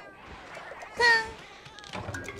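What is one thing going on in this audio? A blade strikes with a sharp hit.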